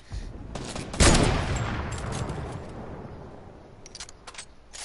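A gun fires with a loud, booming blast that rumbles away.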